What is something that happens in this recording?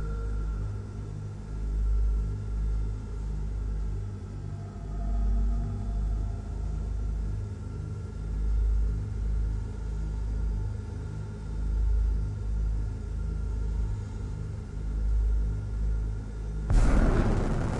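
A spacecraft engine hums low and steadily.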